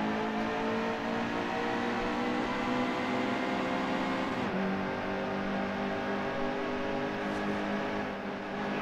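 Race car tyres hum on the track.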